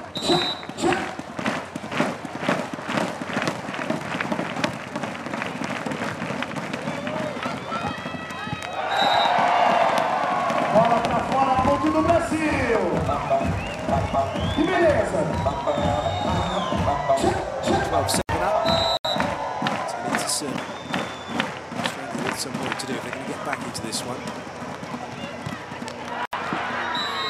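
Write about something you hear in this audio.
A ball is struck with hands during a rally.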